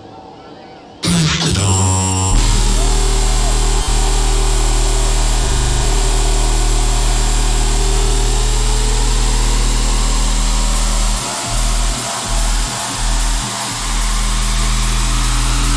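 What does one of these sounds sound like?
Loud electronic dance music plays with heavy bass.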